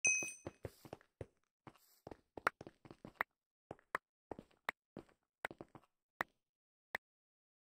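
Short game footsteps tap quickly on stone.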